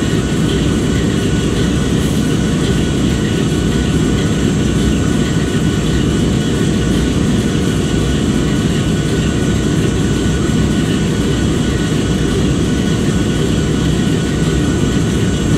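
A diesel locomotive engine idles with a steady, deep rumble close by.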